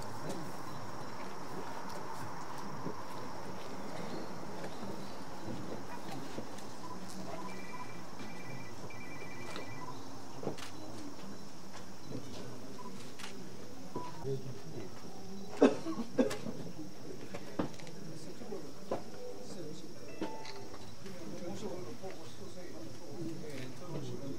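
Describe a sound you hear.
People murmur quietly outdoors.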